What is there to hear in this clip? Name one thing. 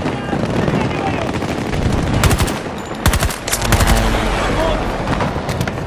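Explosions boom in the distance.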